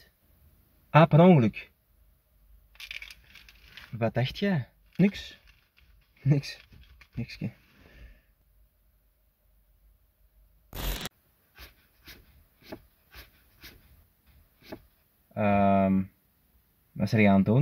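A young man speaks with animation close to a phone microphone.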